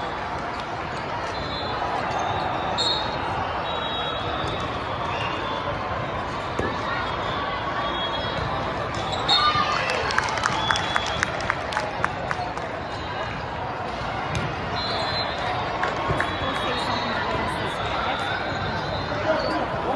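A large indoor crowd chatters steadily in a big echoing hall.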